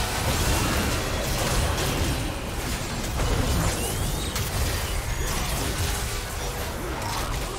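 Game spell effects burst and crackle in a rapid fight.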